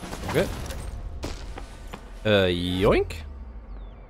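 A man talks close to a microphone.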